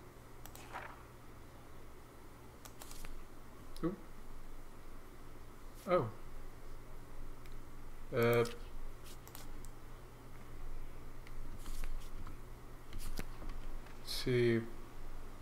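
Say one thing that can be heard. Notebook pages flip with soft swishes.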